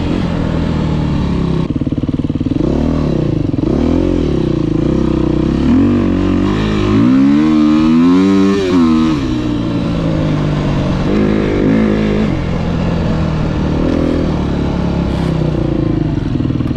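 A dirt bike engine revs up and down.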